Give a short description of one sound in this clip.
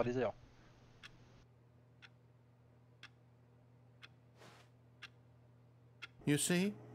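A wall clock ticks steadily once a second.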